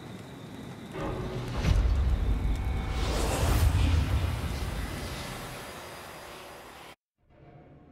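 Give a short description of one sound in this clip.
A deep game rumble swells loudly and then slowly fades.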